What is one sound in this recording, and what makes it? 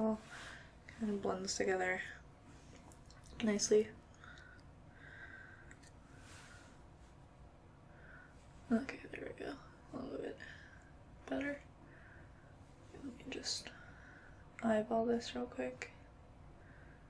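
A young woman talks calmly close to a microphone, with pauses.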